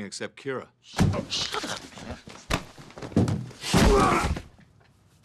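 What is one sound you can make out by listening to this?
Two men scuffle and grapple noisily.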